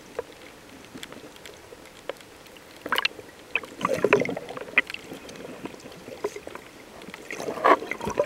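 Water bubbles and gurgles close by, heard from underwater.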